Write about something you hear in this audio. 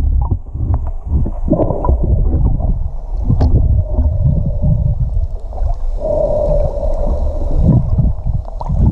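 A swimmer splashes and kicks at the surface, heard muffled from underwater.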